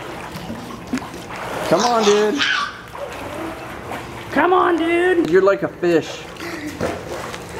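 Water splashes and laps gently in a pool.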